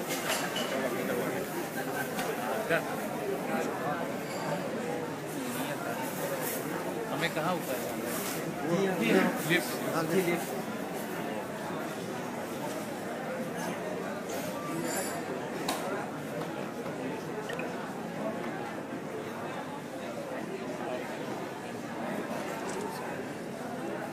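A crowd of men murmurs in a large echoing hall.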